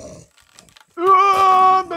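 A bear growls loudly.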